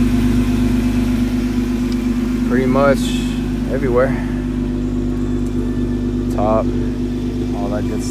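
A vehicle engine idles with a steady low hum.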